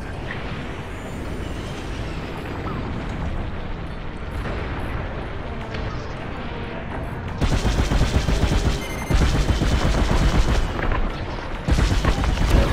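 A spacecraft engine hums and roars steadily.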